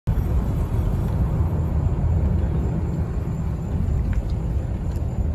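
A car engine rumbles steadily inside a moving car.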